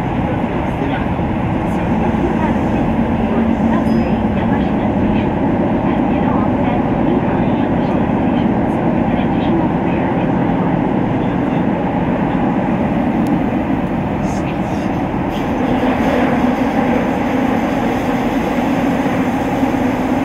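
Wheels clatter over the rail joints.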